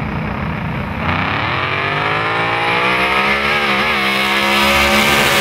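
Two race car engines rev loudly and roar off with rising pitch.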